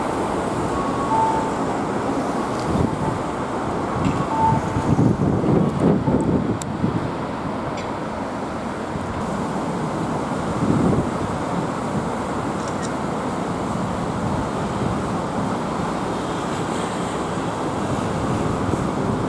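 Traffic rumbles steadily past on a busy road.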